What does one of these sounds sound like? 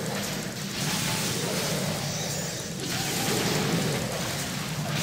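Game combat effects crackle and clash.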